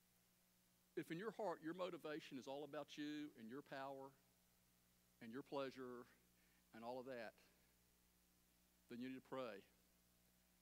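A middle-aged man speaks calmly in short phrases through a microphone.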